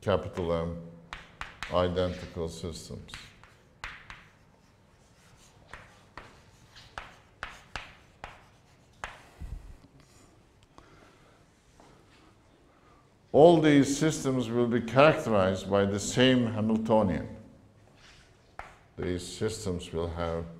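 An elderly man lectures, speaking calmly.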